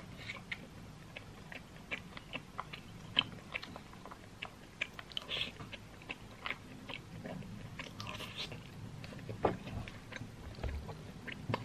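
A plastic spoon scrapes and clicks against a plastic food container.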